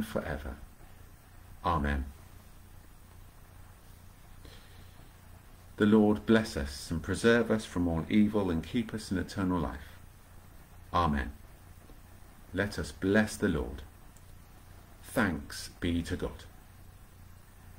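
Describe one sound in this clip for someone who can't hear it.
A middle-aged man speaks calmly and haltingly, close to a microphone.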